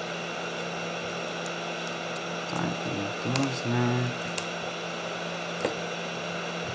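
Small plastic connectors click softly as wires are handled.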